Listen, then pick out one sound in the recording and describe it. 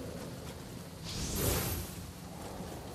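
A magical burst whooshes with a glittering crackle.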